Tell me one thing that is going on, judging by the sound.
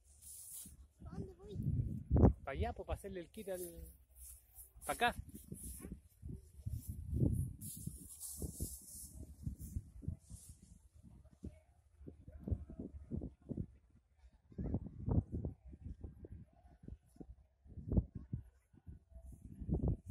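Wind gusts in the open and rumbles against the microphone.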